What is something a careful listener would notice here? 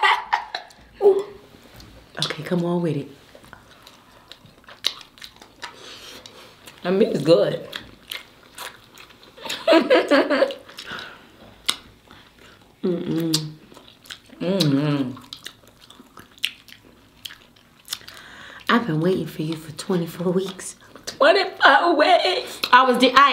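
Crab shells crack and crunch as they are eaten.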